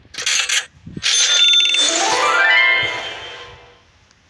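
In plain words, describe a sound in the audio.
A bright chime sounds, rising in a run of tones.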